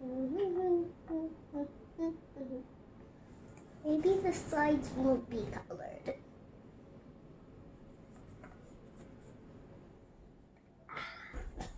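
A young girl talks close by in a high, lively voice.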